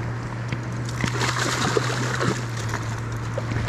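Water splashes as a fish is scooped up in a net.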